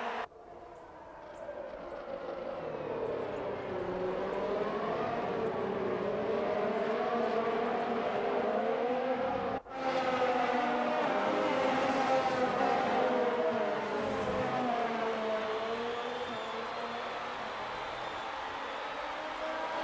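A racing car engine whines loudly at high revs, rising and falling in pitch as it shifts gears.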